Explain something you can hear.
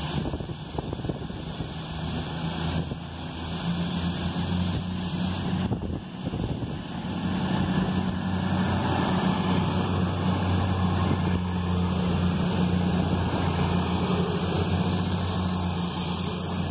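A diesel train's engine hums loudly as it rolls into a station.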